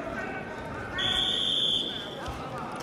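A referee's whistle blows sharply in a large hall.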